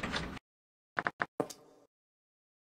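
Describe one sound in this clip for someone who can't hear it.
A game menu button clicks several times.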